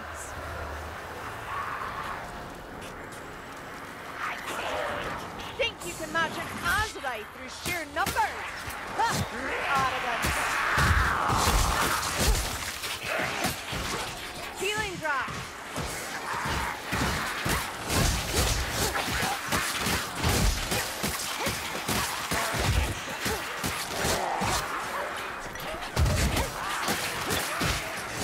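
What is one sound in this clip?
Blades swing and slash into flesh with sharp thuds.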